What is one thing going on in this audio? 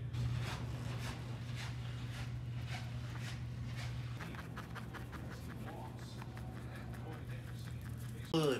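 A hand rubs and brushes against trouser fabric.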